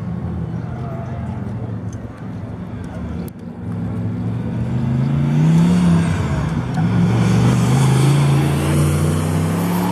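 A car engine drones in the distance and grows louder as it approaches.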